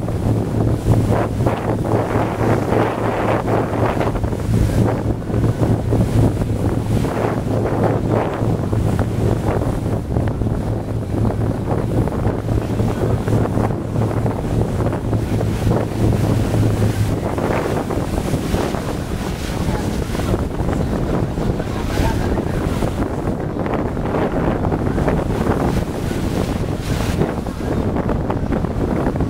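Waves slap against a small boat's hull.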